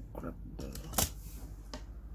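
A toy car is set down on a rubber mat with a soft knock.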